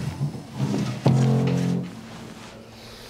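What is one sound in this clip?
A piano key is struck and rings.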